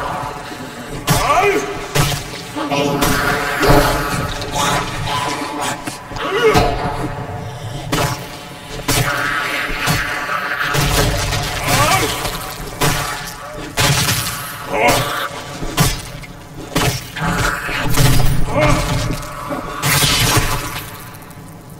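Heavy blows thud into flesh again and again.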